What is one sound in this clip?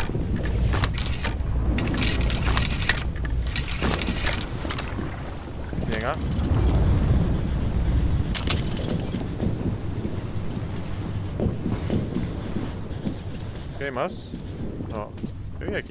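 A man talks casually, close to a microphone.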